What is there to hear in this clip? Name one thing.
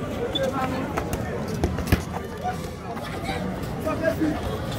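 A football thuds as young men kick it on pavement.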